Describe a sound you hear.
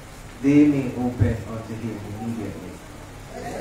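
A man speaks into a microphone, heard through loudspeakers in an echoing hall.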